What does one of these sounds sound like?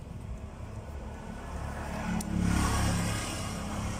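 Fingers click and tap against a small plastic part.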